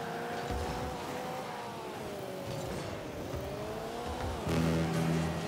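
A car engine hums, its pitch sliding up and down.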